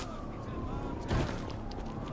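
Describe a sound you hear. Footsteps land with a heavy thud.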